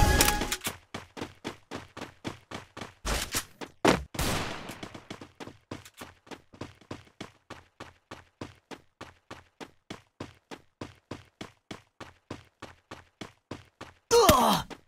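Quick footsteps thud over the ground.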